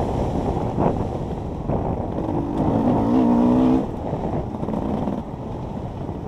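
A dirt bike engine roars and revs up and down.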